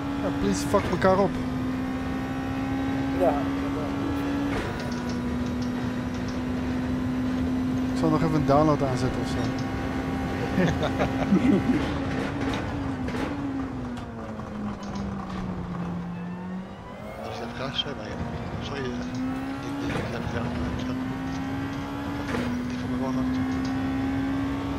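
A racing car engine roars at high speed, slows down, then speeds up again.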